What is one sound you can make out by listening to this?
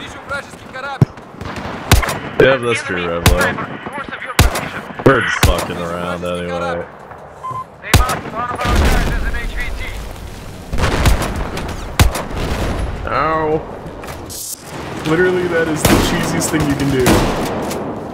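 A rifle fires sharp single shots.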